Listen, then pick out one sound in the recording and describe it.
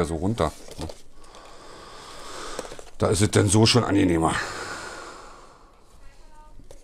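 A cardboard box slides and scrapes in the hands.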